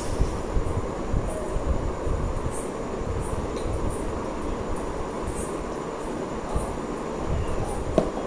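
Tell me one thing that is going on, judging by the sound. A young man gulps down a drink.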